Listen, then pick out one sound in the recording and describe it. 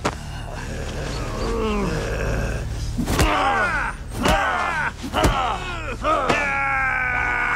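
Dry leaves rustle and crunch as men scuffle on the ground.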